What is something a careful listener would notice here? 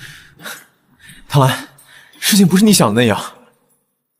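A young man speaks urgently and pleadingly, close by.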